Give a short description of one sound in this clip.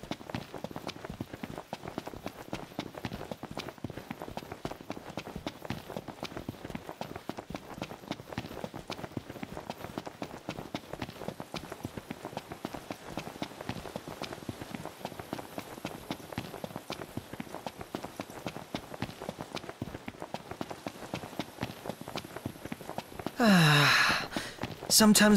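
Several pairs of boots run fast on a dirt path.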